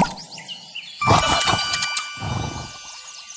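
A bright magical chime rings out with sparkling tones.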